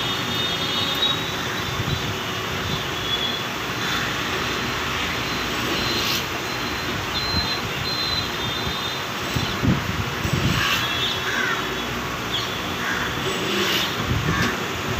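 A cutter grinds against a metal key with a high scraping whine.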